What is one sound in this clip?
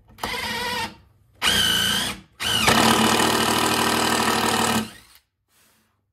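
A power drill whirs in short bursts as it drives screws into wood.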